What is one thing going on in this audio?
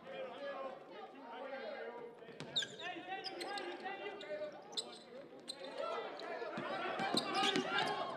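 A basketball bounces on a wooden floor as a player dribbles.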